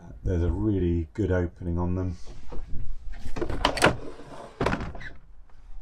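A plastic roof hatch creaks and clicks as it is pushed open.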